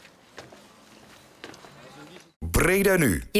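Footsteps crunch softly on a gravel path outdoors.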